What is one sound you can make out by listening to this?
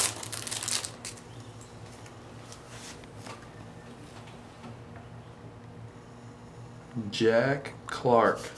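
Trading cards slide and tap against each other as they are flipped through.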